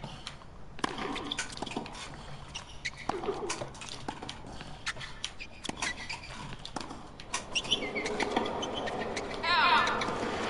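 A tennis ball is struck back and forth with sharp pops of rackets.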